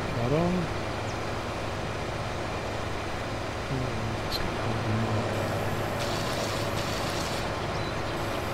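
A mower attachment whirs through grass.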